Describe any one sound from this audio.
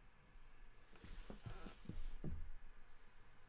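Paper rustles and thumps as a sheet is moved.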